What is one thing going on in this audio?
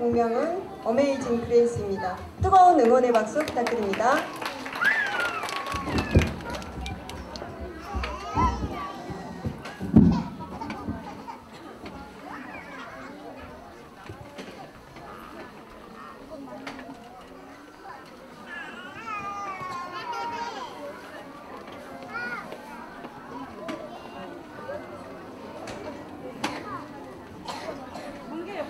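An audience murmurs and chatters nearby.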